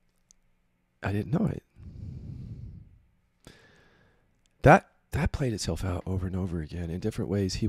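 A middle-aged man speaks close to a microphone, with pauses.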